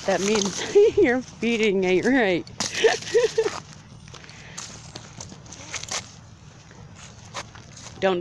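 Footsteps shuffle through dry leaves on a path.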